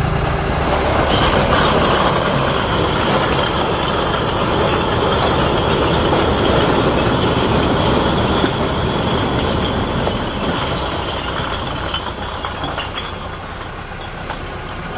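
Bricks tumble and clatter out of a tipping truck bed.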